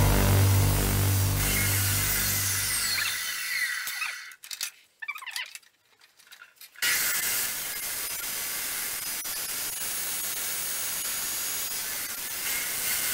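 An abrasive chop saw grinds harshly through metal.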